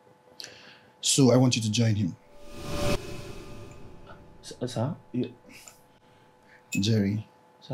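A man speaks in a deep voice, close by.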